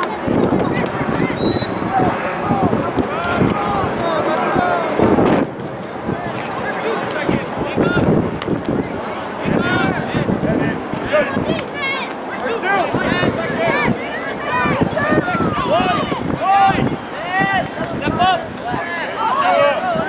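Young men shout to each other in the distance on an open field.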